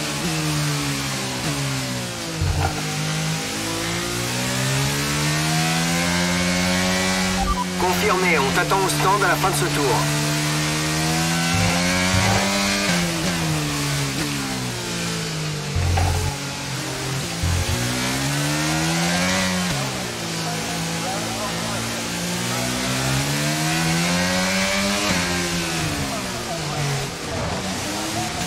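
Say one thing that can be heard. Rain patters steadily on a racing car.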